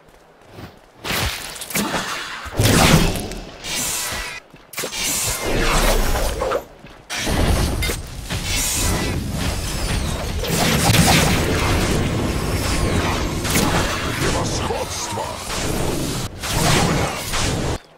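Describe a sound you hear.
Magic spells crackle and whoosh in bursts.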